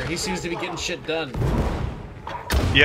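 An explosion booms with a roar of fire.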